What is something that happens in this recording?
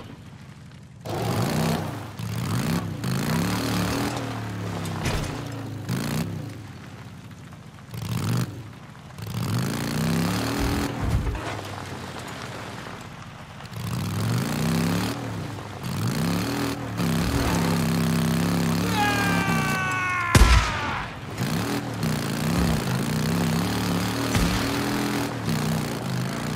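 A motorcycle engine revs up and down, again and again.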